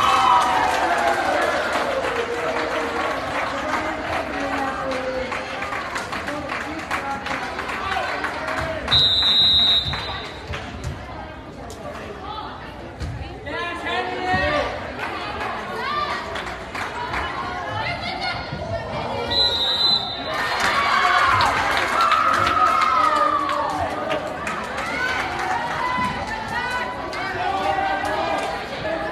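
A crowd of spectators cheers and shouts in a large echoing hall.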